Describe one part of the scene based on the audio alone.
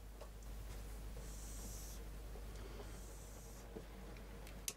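A marker squeaks across a board.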